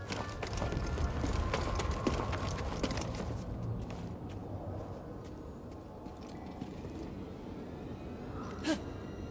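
Hands scrape and grip on rock while climbing.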